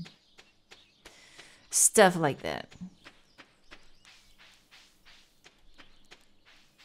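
Quick light footsteps tap steadily on a dirt path.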